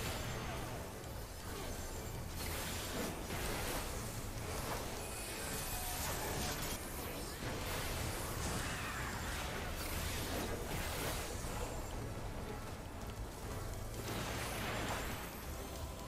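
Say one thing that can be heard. Spell effects from a video game battle blast and crackle.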